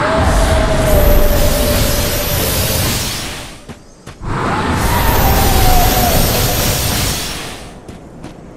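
A stone wall crumbles with a loud roaring rumble.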